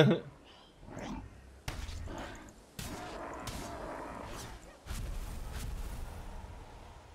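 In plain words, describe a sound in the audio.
Game sword strikes clash and crackle.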